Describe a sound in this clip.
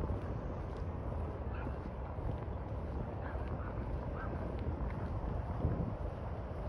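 Wind blows against the microphone outdoors.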